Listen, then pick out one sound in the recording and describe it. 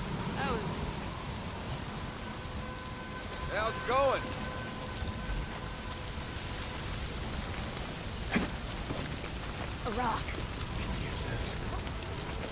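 A large fire crackles and roars.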